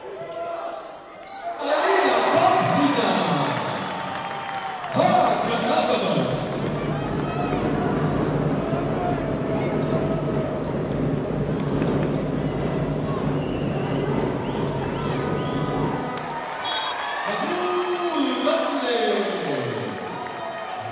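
Sneakers squeak on a hard court.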